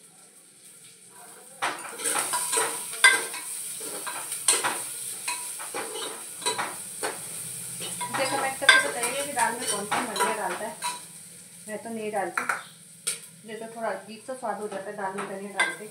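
A metal spoon scrapes and clinks in a pot.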